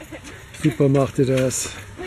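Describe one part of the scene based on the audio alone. Running footsteps patter on a paved road.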